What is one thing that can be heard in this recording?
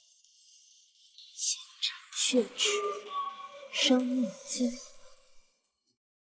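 A young woman speaks with feeling.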